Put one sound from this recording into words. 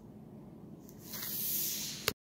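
A hand brushes against the device.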